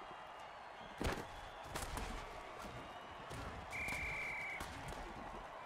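Armored players crash together with heavy thuds.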